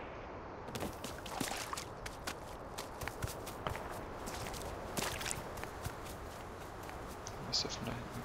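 Footsteps crunch quickly on a dirt path.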